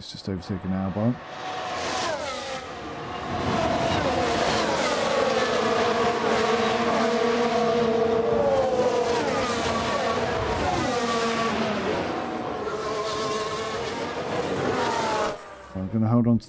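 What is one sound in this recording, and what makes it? Racing car engines roar and whine as cars speed past.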